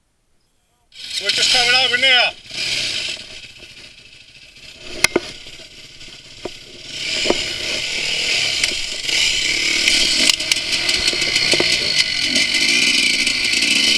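A quad bike engine revs loudly up close, then keeps running as it rides over rough ground.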